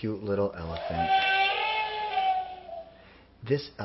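A toy elephant plays a short electronic tune.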